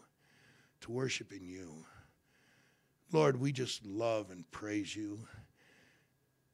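An elderly man speaks calmly and slowly into a microphone.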